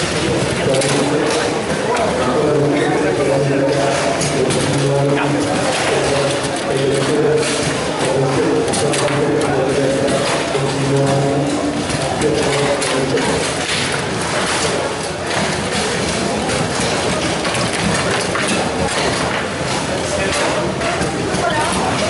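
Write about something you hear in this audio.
Metal rods rattle and thump as players spin and slide them.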